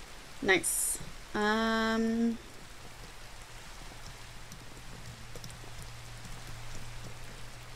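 Rain patters steadily outside.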